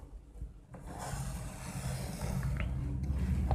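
A marker squeaks faintly across a whiteboard.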